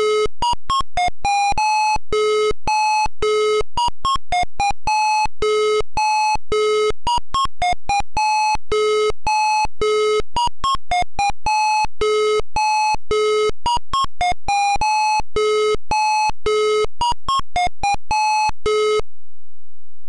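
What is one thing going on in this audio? Simple electronic game music plays in short, bright beeping notes.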